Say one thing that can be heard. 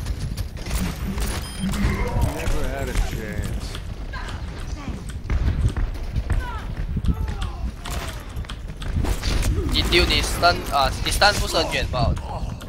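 A revolver fires sharp shots in quick bursts.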